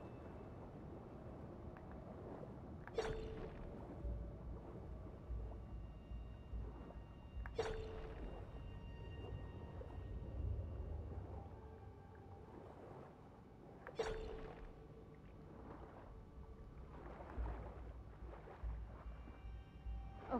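Water bubbles and gurgles as a swimmer moves underwater.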